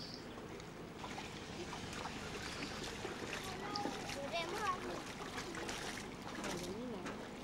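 Water splashes as children wade through shallow water.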